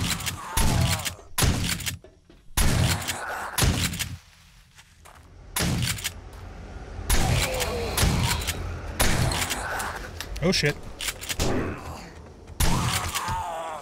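A shotgun fires loud, booming shots again and again.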